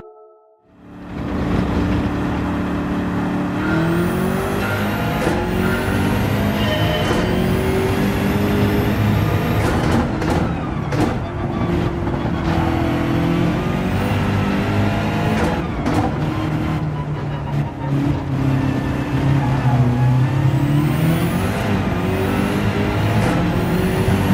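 A racing car engine roars loudly, climbing in pitch and dropping with each gear change.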